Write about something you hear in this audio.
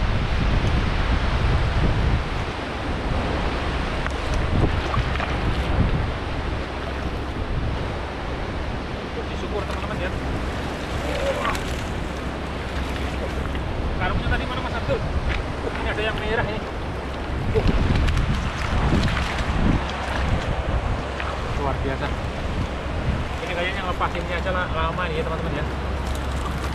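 A shallow stream flows and trickles steadily.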